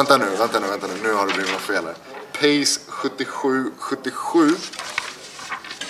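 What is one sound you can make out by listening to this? Stiff cards rustle and flap as they are handled.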